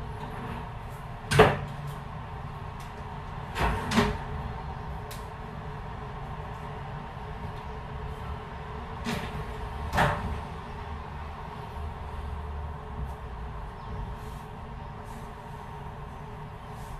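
A cloth rubs and squeaks on window glass.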